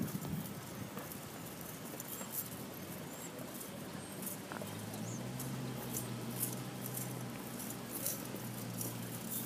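Footsteps shuffle and scuff on pavement outdoors.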